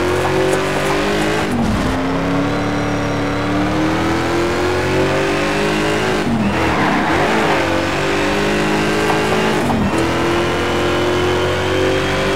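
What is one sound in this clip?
A racing car engine roars loudly, its pitch rising as it speeds up and dropping sharply at each gear change.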